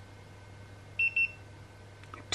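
A handheld thermometer beeps twice quickly.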